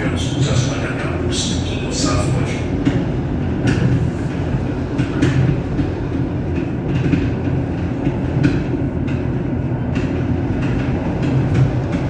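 Train wheels clatter over rail joints.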